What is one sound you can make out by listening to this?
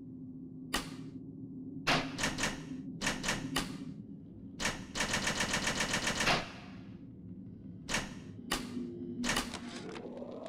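Short menu clicks tick one after another as selections change.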